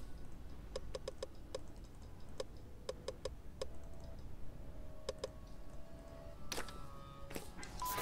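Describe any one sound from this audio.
Soft interface clicks sound as items are picked in a menu.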